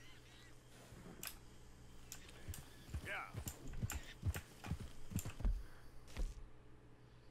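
A horse's hooves clop on a dirt path.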